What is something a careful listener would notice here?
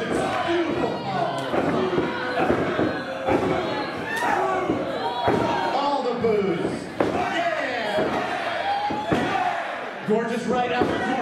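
Sharp slaps ring out as wrestlers strike each other.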